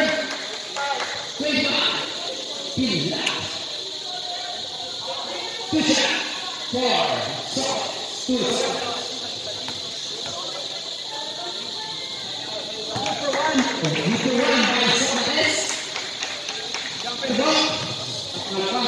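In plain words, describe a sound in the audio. Young men shout and call out to each other across an open court.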